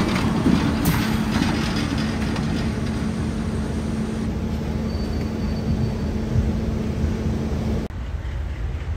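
An electric locomotive hums steadily close by.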